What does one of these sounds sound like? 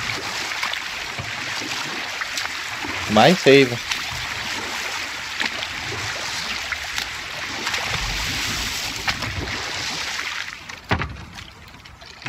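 Oars splash in the water at a steady pace.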